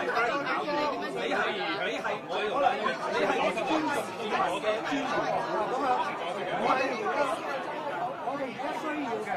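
A crowd murmurs and talks.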